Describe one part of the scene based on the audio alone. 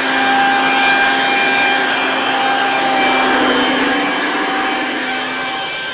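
A high-pressure water jet hisses against concrete.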